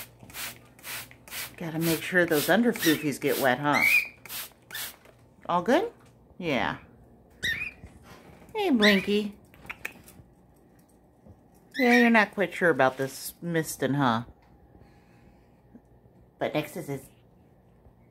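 A cockatiel whistles and chirps loudly close by.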